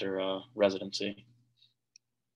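A young man speaks calmly into a microphone, heard as if through an online call.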